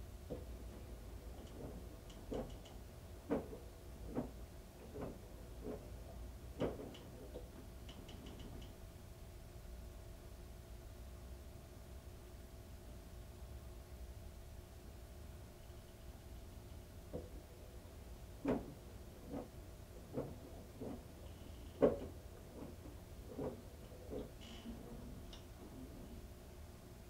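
Wet laundry thumps and flops inside a turning washing machine drum.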